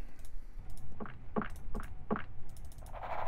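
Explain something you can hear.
Footsteps tap softly across a floor.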